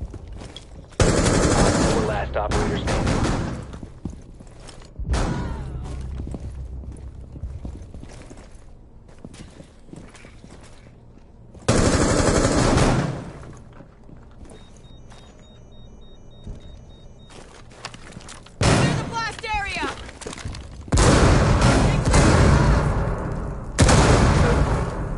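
Gunshots fire in loud rapid bursts.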